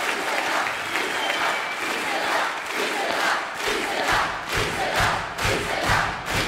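Children scream with excitement.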